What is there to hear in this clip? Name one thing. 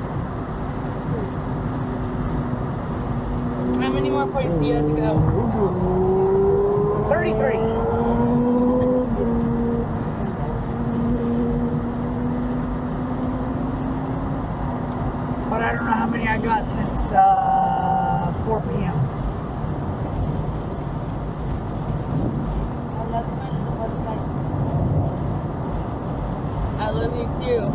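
Tyres rumble steadily on the road.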